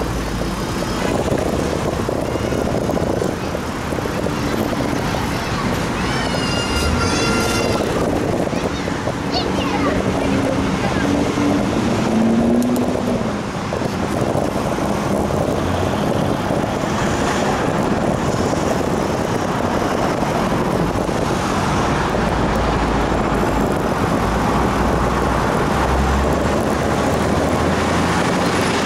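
Car engines hum in passing traffic nearby.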